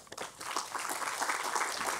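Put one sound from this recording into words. Paper rustles close to a microphone.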